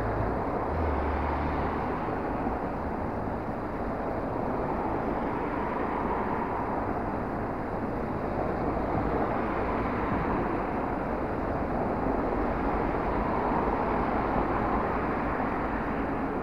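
Cars drive past nearby one after another.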